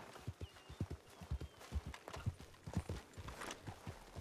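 A horse's hooves thud on a dirt road.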